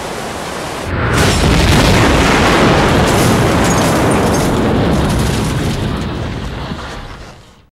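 A vehicle explodes with a loud roar.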